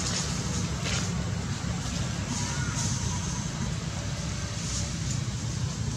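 A monkey rustles branches and leaves as it climbs through a tree.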